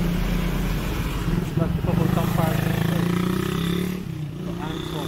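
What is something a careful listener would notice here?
A motorbike engine rumbles past.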